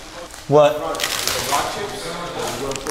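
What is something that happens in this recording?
Plastic film crinkles and rustles.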